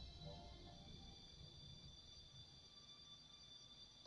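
A soft click sounds once.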